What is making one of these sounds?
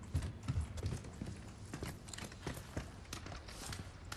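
Hands and boots clatter on a wooden ladder.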